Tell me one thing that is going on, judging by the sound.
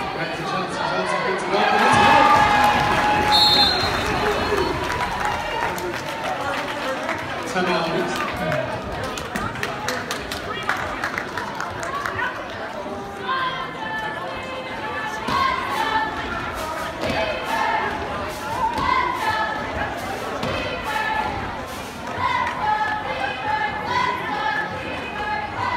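A crowd cheers and chatters loudly in a large echoing gym.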